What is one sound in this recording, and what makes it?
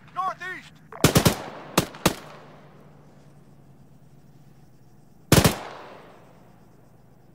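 Rifle shots crack loudly and echo across open ground.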